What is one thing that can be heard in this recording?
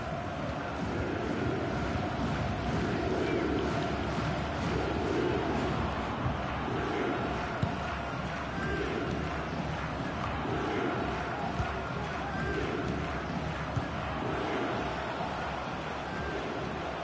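A stadium crowd chants in a steady rhythm.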